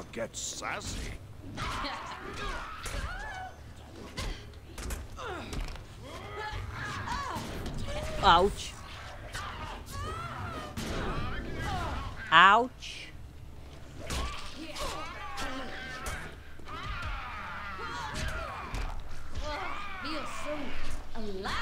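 Swords slash and clang in a fast fight.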